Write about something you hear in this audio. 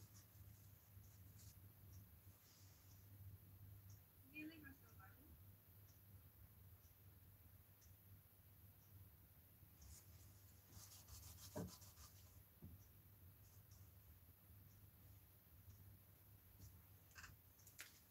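A paintbrush dabs and scratches softly on a surface.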